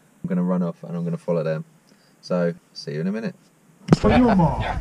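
A man talks calmly and close up.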